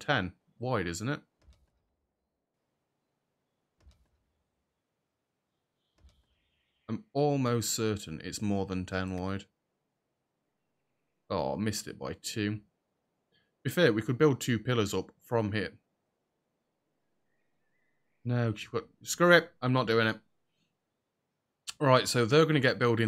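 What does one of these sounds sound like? A man talks casually into a close microphone, in bursts with pauses.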